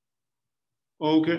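An older man speaks briefly into a microphone, heard as if over an online call.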